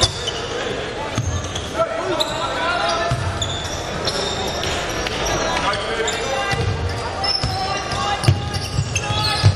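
Sneakers squeak on a hardwood court in an echoing hall.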